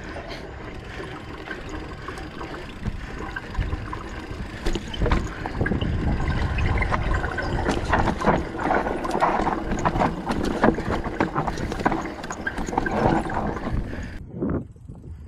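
A mountain bike rattles and bumps over a rocky trail.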